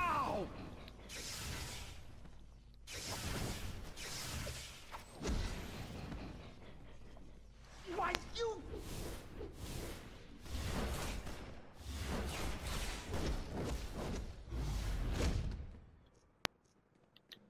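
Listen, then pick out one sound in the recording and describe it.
Energy blasts whoosh and crackle in quick bursts.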